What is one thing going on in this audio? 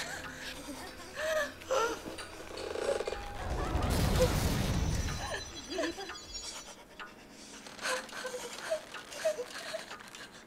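A young woman sobs and whimpers close by.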